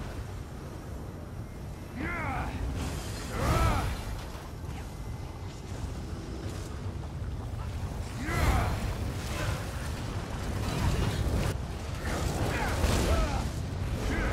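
Magic spells whoosh and burst during a fight.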